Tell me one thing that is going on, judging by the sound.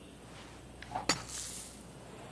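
A golf club strikes a ball with a sharp thwack.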